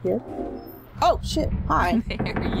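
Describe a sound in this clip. A young woman speaks loudly.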